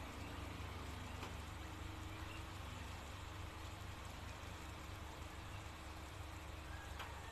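A fast river rushes and churns.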